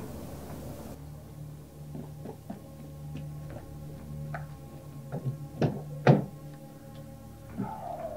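Footsteps walk on hard ground.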